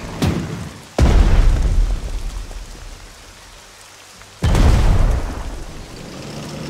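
Heavy explosions boom in a battle.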